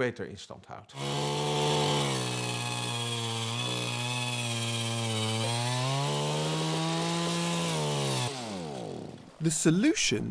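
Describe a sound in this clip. A motorised ice auger drones steadily as it drills.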